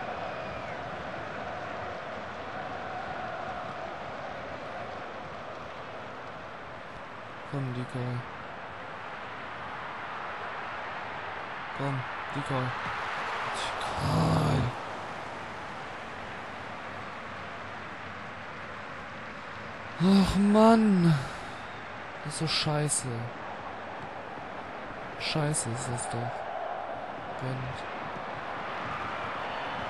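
A stadium crowd murmurs steadily in the distance.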